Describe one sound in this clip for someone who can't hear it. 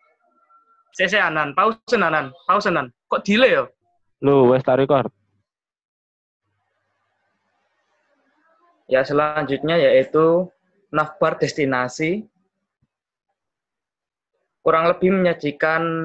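A man speaks calmly over an online call, in short bursts with pauses.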